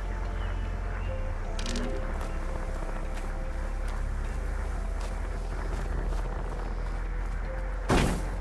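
Tall grass rustles as someone moves through it.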